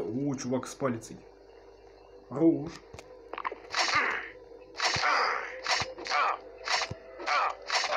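Blades slash and strike in a fight.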